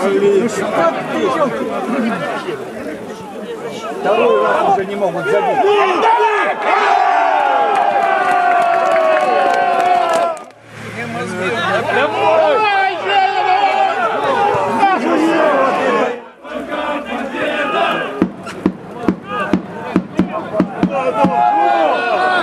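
A crowd of male fans shouts and cheers loudly nearby, outdoors.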